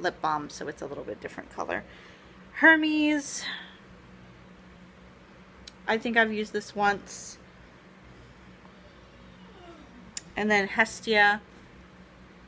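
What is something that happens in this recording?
A young woman speaks softly and close by, in short bursts with pauses.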